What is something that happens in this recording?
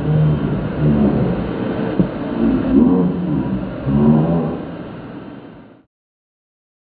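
A vacuum cleaner runs with a steady whir.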